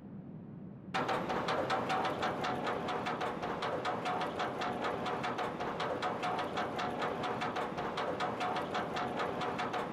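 A lift chain clatters quickly and steadily as a roller coaster train climbs.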